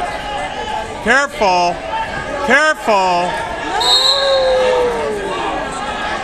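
Men shout loudly in encouragement close by.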